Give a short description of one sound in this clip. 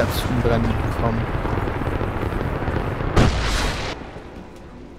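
Flames burst up and roar.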